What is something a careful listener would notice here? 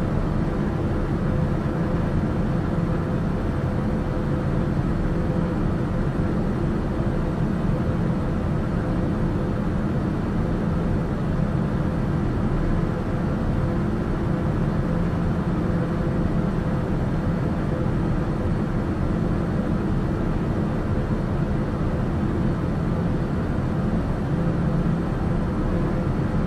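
An aircraft engine drones at cruise, heard from inside the cabin.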